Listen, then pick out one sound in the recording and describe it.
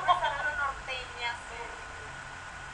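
A young woman speaks brightly close to a microphone.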